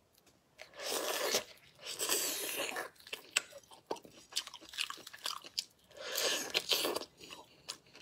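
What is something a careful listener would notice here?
A young woman slurps and chews food close to a microphone.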